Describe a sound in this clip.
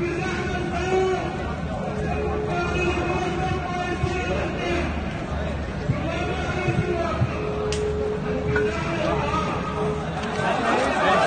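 A crowd of men chants together outdoors.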